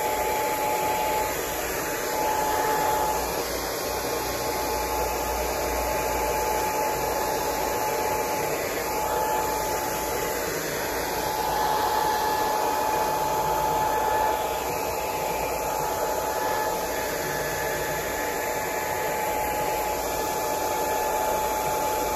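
A hair dryer blows with a steady whirring hum.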